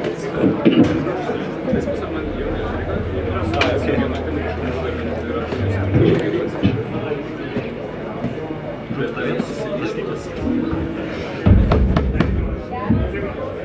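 An electric bass plays a deep line.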